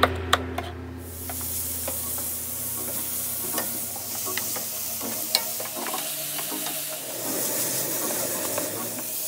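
Meat sizzles loudly in a hot pan.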